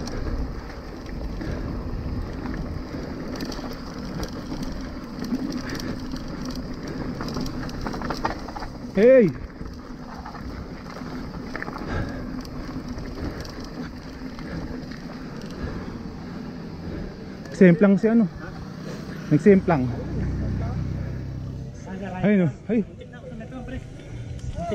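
Bicycle tyres rumble and crunch over a rough dirt track.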